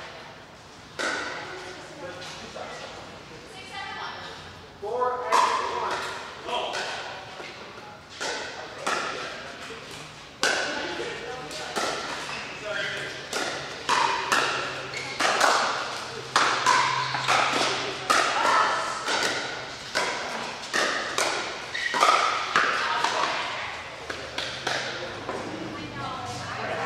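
Paddles strike a plastic ball back and forth with sharp pops in a large echoing hall.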